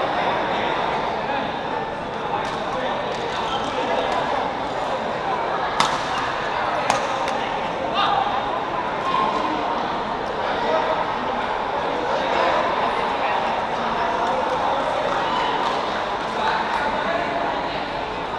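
Shoes squeak on a sports court floor.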